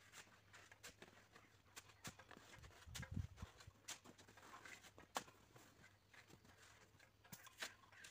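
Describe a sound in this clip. A shovel scrapes and knocks against packed snow.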